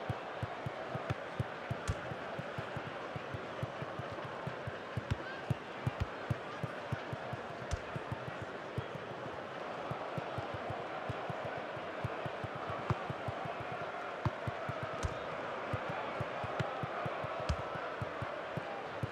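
A large crowd roars steadily in a stadium.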